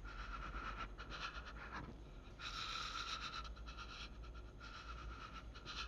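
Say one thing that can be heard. A young woman sobs quietly.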